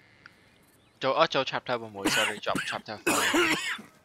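A man speaks in a low, gruff voice, close by.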